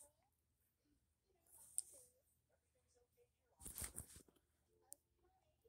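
A tablet is handled, rubbing and bumping against fabric close by.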